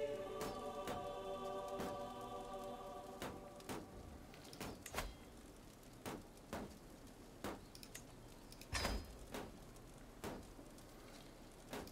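Soft interface clicks sound as menus open and close.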